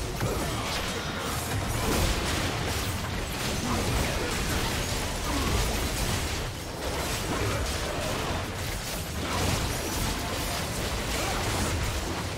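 Magic blasts, hits and explosions crackle and boom in a busy fight.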